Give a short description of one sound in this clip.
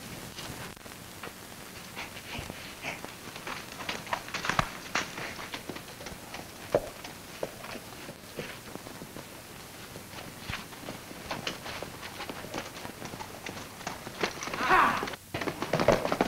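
Horse hooves clop on dirt.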